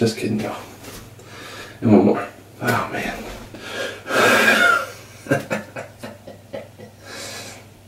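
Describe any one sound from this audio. A young man talks casually close by.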